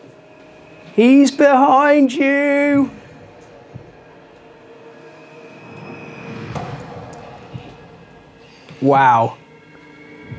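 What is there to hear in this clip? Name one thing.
A young girl calls out in a high voice.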